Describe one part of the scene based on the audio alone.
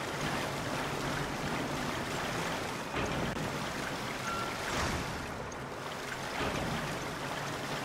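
Water sloshes as a woman wades through it.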